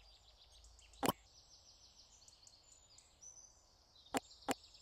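Sharp menu clicks sound a few times.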